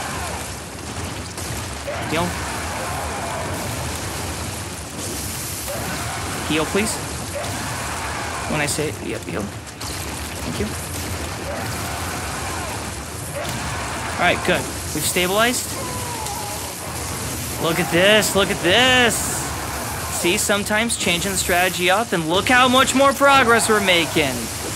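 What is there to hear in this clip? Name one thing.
Game sound effects clash and whoosh throughout.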